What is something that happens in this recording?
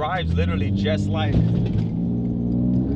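A man talks with animation inside a car.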